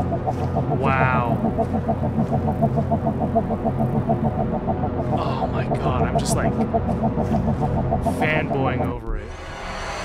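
Jaunty fairground organ music plays, then cuts off abruptly.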